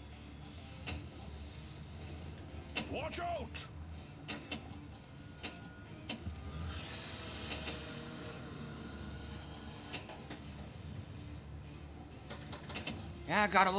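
A pinball ball knocks against bumpers and flippers with sharp clicks.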